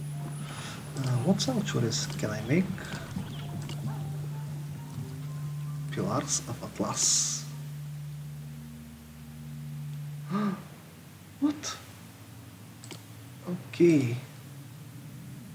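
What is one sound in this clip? A man speaks casually into a nearby microphone, in short bursts.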